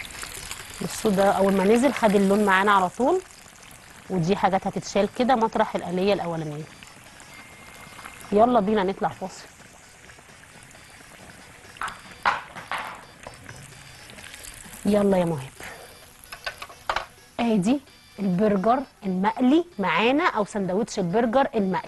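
A middle-aged woman talks calmly and clearly into a microphone.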